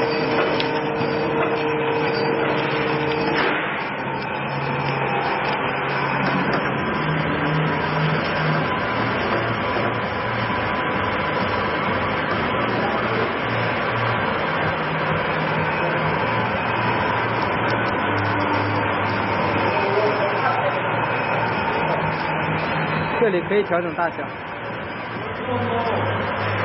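A flow-wrap packaging machine runs with a steady mechanical hum and whir.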